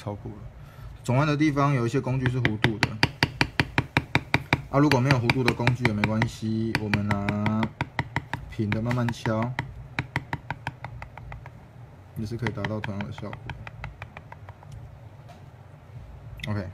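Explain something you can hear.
A mallet taps a stamping tool into leather in quick, steady blows.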